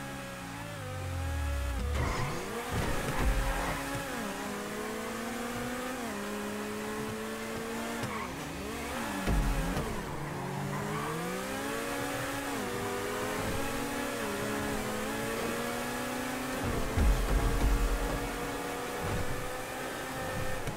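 A sports car engine roars and revs up and down through the gears.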